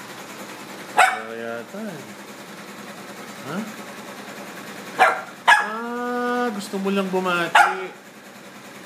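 A small dog whines in high, drawn-out cries.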